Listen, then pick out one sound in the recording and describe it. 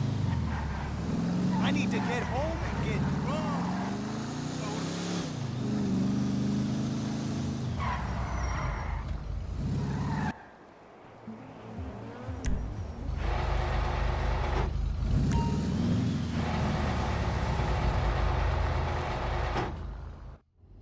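A car engine revs and roars as the car speeds along, rising and falling in pitch.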